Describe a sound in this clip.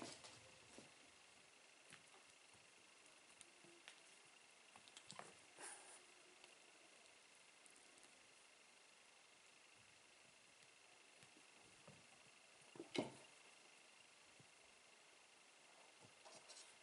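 Kittens' paws patter and thump softly on a wooden floor.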